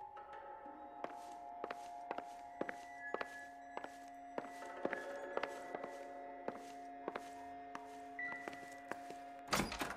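Footsteps walk steadily across a wooden floor.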